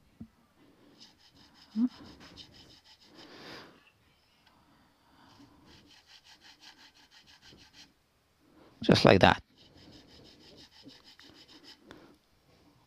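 A small file rasps back and forth in short, quick strokes.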